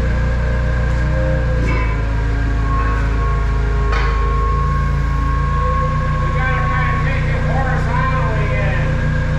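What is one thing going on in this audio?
A forklift engine idles with a steady low rumble.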